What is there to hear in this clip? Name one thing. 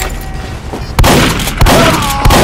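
A shotgun fires with a sharp bang.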